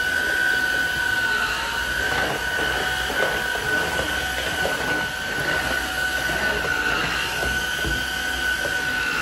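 A vacuum cleaner head bumps and scrapes across a hard floor.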